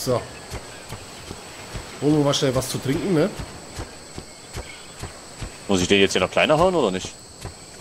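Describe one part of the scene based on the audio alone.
Heavy footsteps thud at a steady pace.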